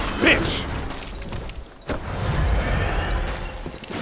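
A heavy blade swooshes through the air.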